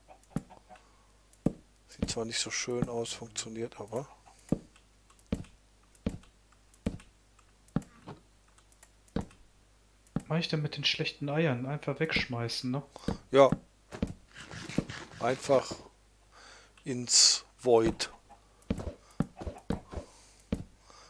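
Wooden fence pieces are placed with short, soft knocks, one after another.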